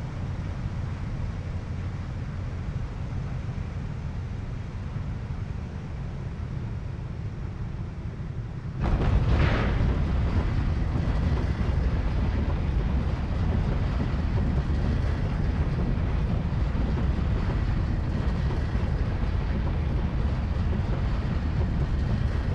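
A propeller plane's engine drones steadily, then suddenly roars much louder.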